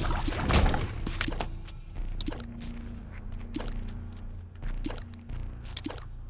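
Small game shots pop and splat in quick bursts.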